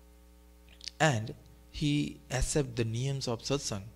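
A man chants in a melodic voice close to a microphone.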